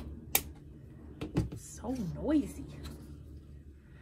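Scissors are set down on a hard surface with a clack.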